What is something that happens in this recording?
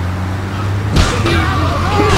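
A van crashes into something with a loud thud.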